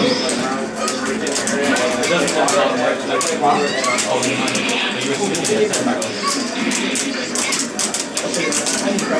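Punches and hits from a fighting game crack sharply through a small loudspeaker.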